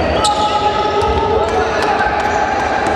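A basketball thumps as it is dribbled on the floor.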